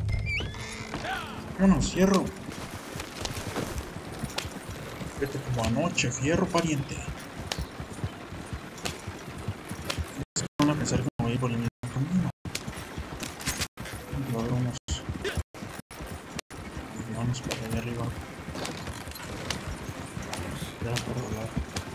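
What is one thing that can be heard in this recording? Wooden wagon wheels rumble and rattle over a dirt track.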